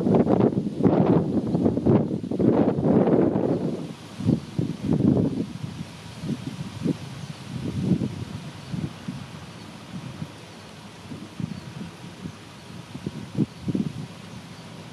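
A diesel locomotive rumbles as a freight train rolls slowly past in the distance.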